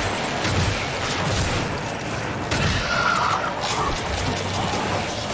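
Electricity crackles and buzzes in a video game.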